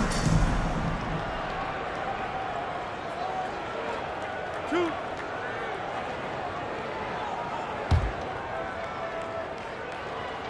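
A large crowd murmurs steadily in a big echoing arena.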